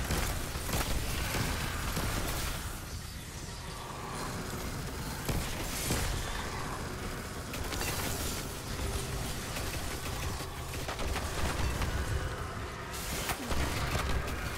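Explosions and shattering crystal burst loudly.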